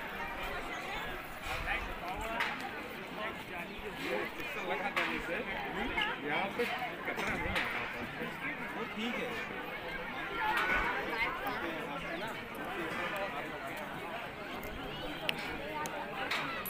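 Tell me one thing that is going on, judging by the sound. A crowd of men and women chatters outdoors all around.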